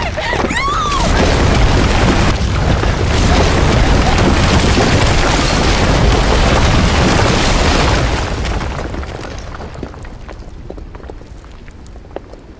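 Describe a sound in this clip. A loud rumbling roar of rushing debris builds and slowly fades.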